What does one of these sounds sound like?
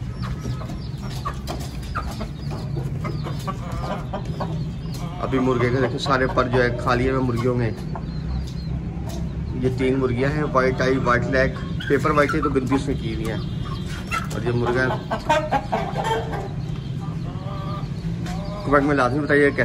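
Chickens cluck and call close by.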